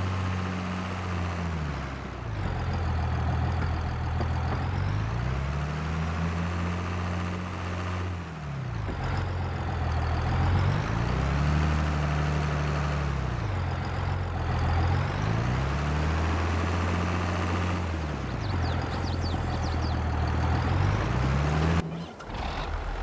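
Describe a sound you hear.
A tractor engine rumbles steadily, its pitch rising and falling.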